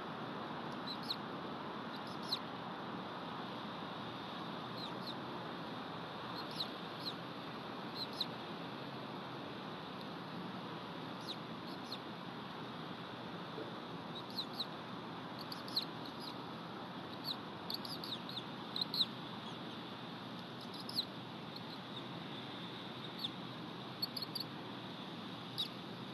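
An eagle gives short, high chirps now and then.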